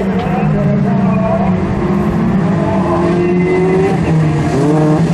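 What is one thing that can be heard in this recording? Several racing car engines roar and rev loudly at close range.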